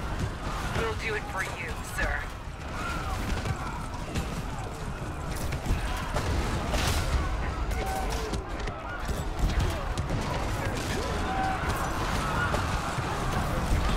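Gunfire crackles and explosions rumble in a battle.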